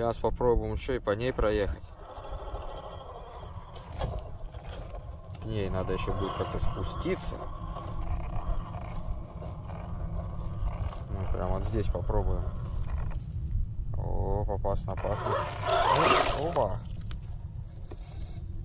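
Tyres churn and squelch through thick mud.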